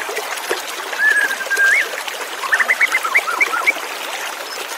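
A white-rumped shama sings in bright whistled phrases.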